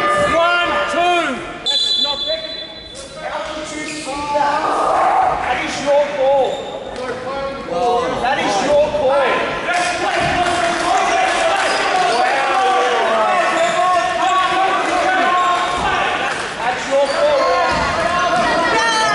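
Young players and onlookers call out and chatter across an echoing hall.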